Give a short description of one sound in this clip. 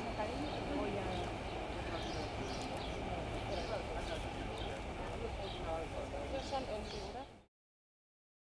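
An electric train rumbles past on an elevated track.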